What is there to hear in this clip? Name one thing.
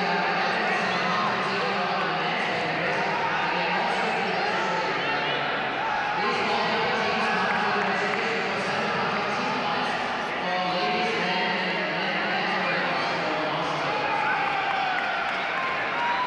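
A crowd chatters steadily in a large echoing hall.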